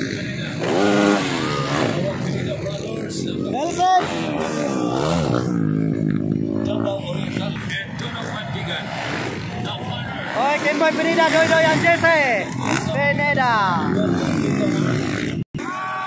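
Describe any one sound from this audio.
Dirt bike engines rev and whine loudly, rising and falling in pitch.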